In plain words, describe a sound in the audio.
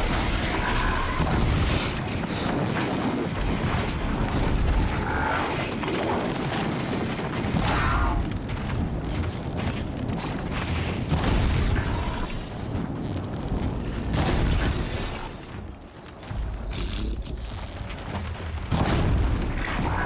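Fire bursts and crackles on a large machine creature.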